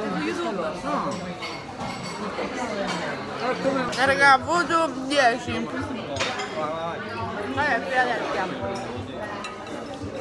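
Another young woman talks nearby.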